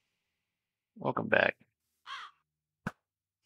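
A young man speaks briefly, close to a microphone.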